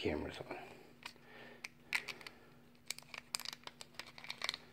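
Small paper or plastic crinkles and clicks between fingers.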